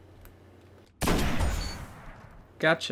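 A sniper rifle fires a single loud, booming shot.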